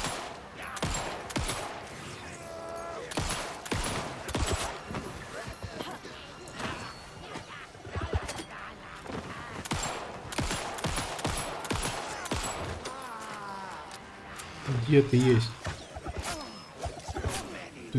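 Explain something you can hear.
Pistol shots fire in sharp bursts.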